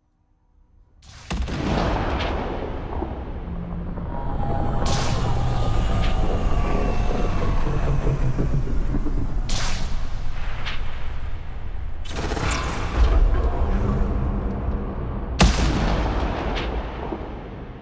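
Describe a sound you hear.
A large spacecraft's engines roar and rumble as it hovers low overhead.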